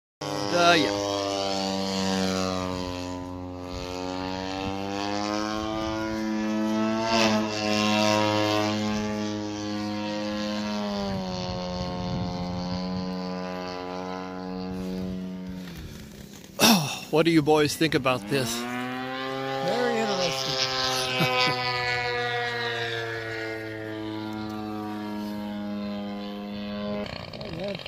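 A model airplane engine drones steadily overhead, rising and falling in pitch as it passes.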